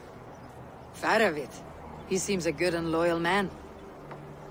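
A woman answers calmly.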